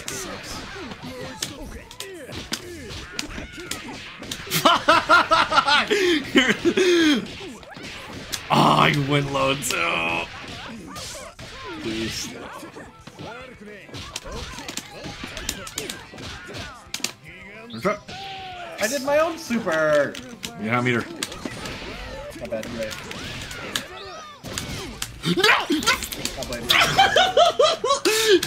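Punches and kicks land with sharp, rapid thuds.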